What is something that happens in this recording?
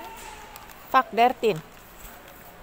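A young child speaks with animation nearby.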